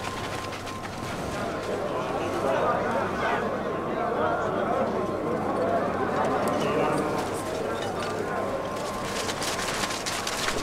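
A crowd of men murmurs and calls out in the distance.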